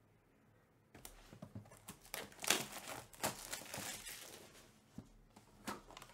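Plastic wrapping crinkles and tears close by.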